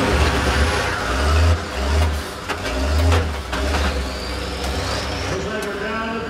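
Metal crunches and bangs as buses collide.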